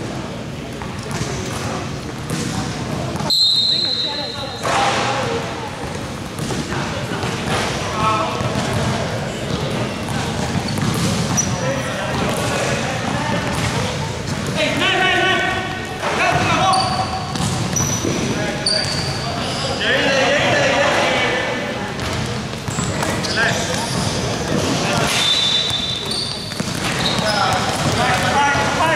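Sneakers squeak sharply on a hard court floor, echoing in a large hall.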